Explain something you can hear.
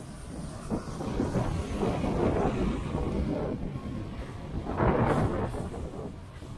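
A bus drives past close by with a rising and falling engine roar.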